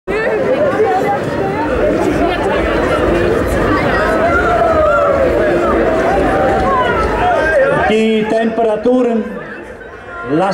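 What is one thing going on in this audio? A large crowd of runners chatters and calls out loudly.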